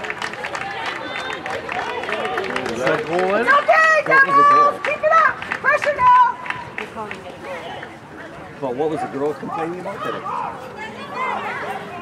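Young women shout and cheer excitedly outdoors.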